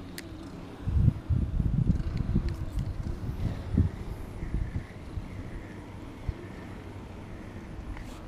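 A fishing reel clicks as it is cranked.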